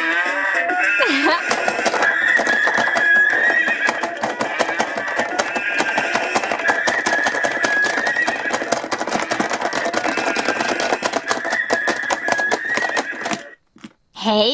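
A toy plays a bouncy electronic tune.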